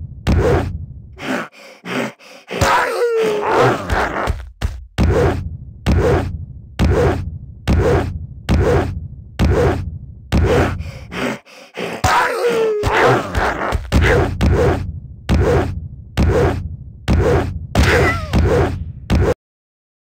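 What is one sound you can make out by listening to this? Game music plays with a bouncy, steady beat.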